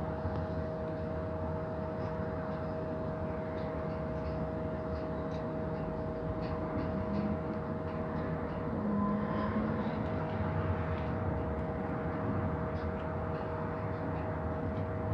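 A bus engine hums and rumbles steadily, heard from inside the bus.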